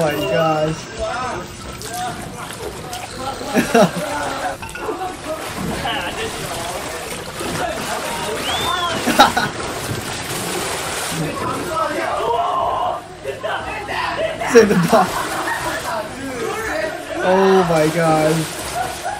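A young man laughs heartily close by.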